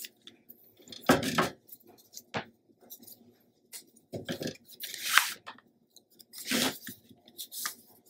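Paper rustles and slides as card is handled.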